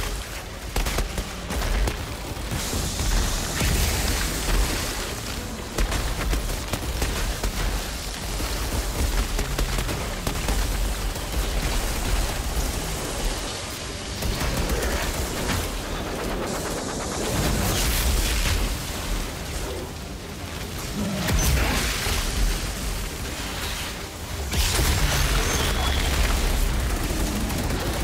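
Gunfire blasts and explosions boom in rapid bursts.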